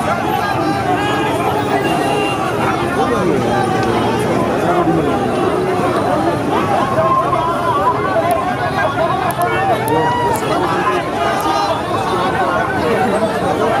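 Many men talk over one another close by.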